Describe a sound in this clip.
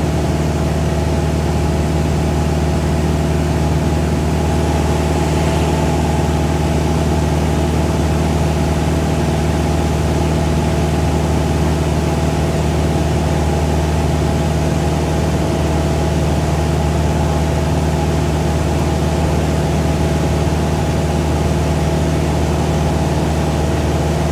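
A small propeller plane's engine drones steadily and loudly from close by.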